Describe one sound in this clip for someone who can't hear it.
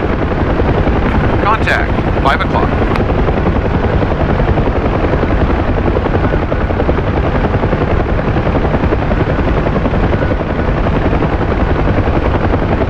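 A helicopter's rotor and engine roar steadily from inside the cockpit.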